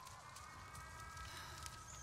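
Flames crackle and roar on a burning machine.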